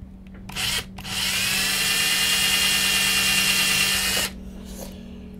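A power drill whirs steadily at high speed.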